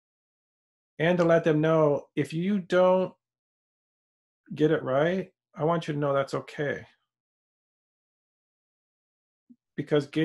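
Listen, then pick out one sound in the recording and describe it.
A middle-aged man speaks calmly and expressively into a close microphone, in short bursts with pauses.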